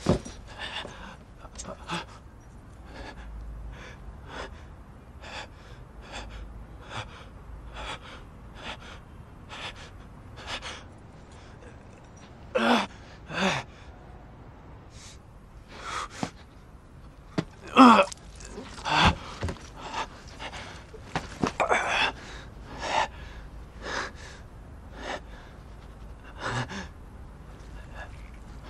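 A young man pants and gasps heavily close by.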